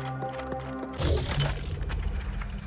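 A game menu opens with a sharp electronic whoosh.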